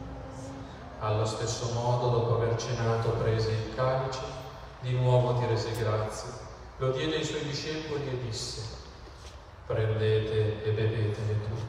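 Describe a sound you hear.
A middle-aged man speaks calmly through a microphone in an echoing room.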